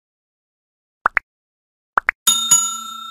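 A finger taps a button with quick double clicks.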